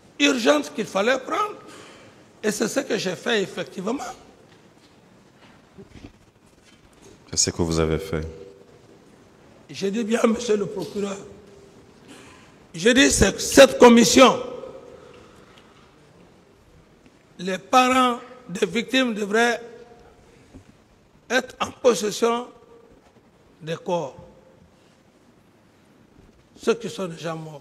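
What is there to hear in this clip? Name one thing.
A middle-aged man speaks with animation into a microphone, in bursts with pauses.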